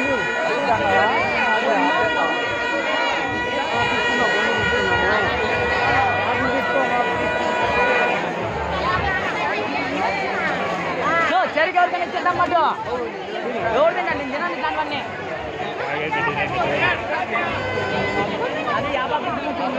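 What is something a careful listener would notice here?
A crowd of people chatters and calls out nearby.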